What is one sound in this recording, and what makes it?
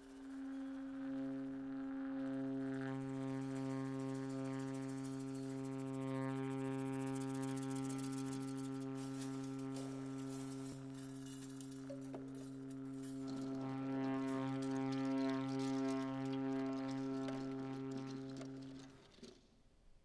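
A cello plays long, held bowed notes.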